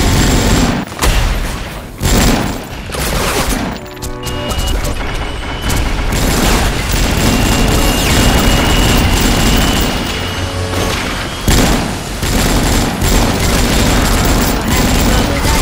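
Gunfire from a game rattles rapidly.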